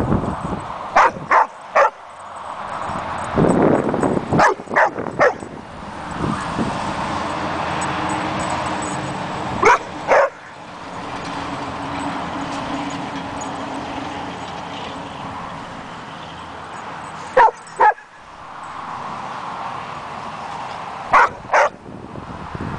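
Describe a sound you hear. Dogs bark sharply now and then, outdoors.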